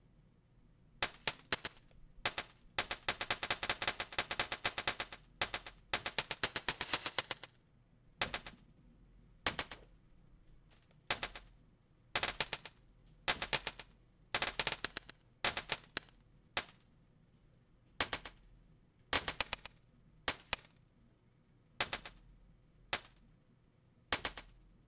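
Electronic drum sounds play in short bursts, some as fast rapid rolls and others as single hits.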